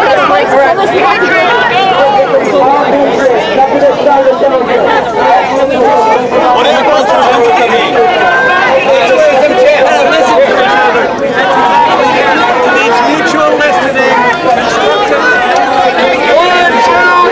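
A crowd of people talks and chatters loudly close by, outdoors.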